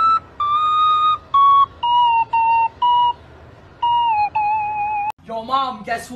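A recorder plays a short, shrill tune of single notes.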